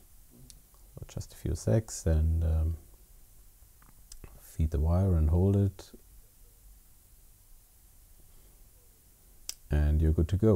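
Small plastic parts click and tap as they are handled.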